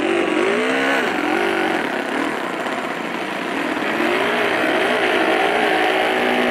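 A model airplane engine runs steadily close by on the ground.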